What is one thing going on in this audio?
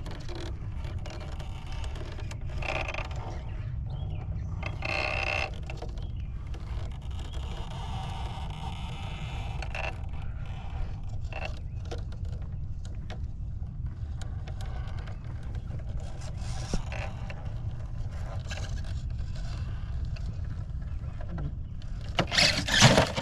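Plastic tyres scrape and knock against rock.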